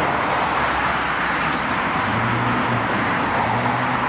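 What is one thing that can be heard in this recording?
A bulldozer engine rumbles nearby.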